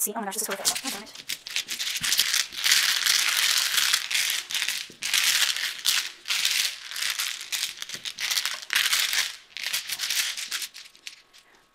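Mahjong tiles clatter and rattle as they are shuffled on a table.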